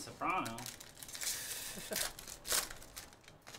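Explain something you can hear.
A foil pack tears open.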